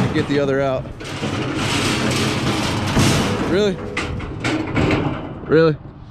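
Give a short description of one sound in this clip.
Small wheels roll over rough pavement.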